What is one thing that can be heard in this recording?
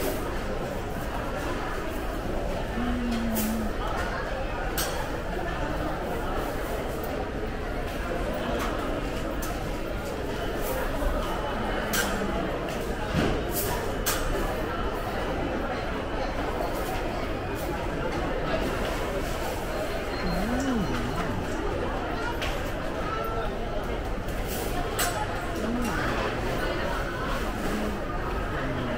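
A crowd murmurs and chatters indistinctly in a large, echoing hall.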